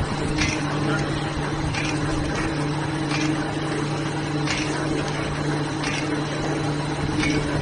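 A machine hums and whirs steadily.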